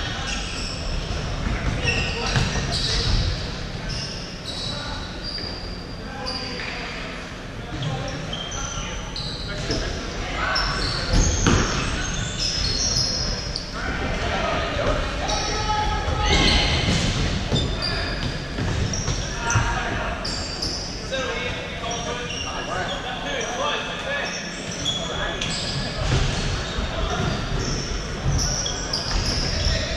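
Sports shoes squeak sharply on a wooden floor in a large echoing hall.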